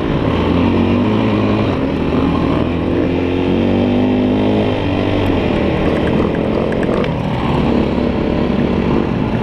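Tyres crunch and rumble over sand and dirt.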